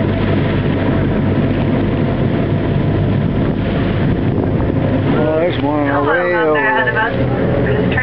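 Wind buffets loudly across open water.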